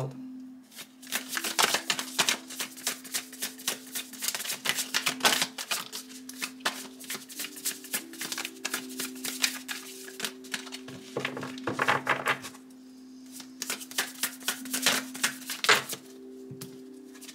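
Playing cards riffle and flick quickly as a deck is shuffled by hand.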